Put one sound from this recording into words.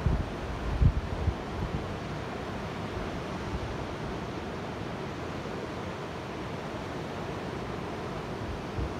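Sea waves wash and break steadily nearby.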